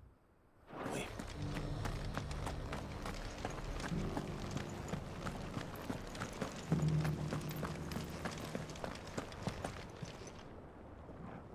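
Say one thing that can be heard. Footsteps tap on stone as someone walks and climbs stairs.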